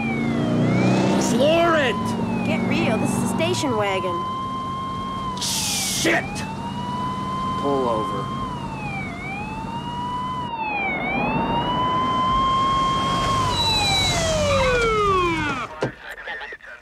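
A police siren wails, rising and falling, close by, then stops.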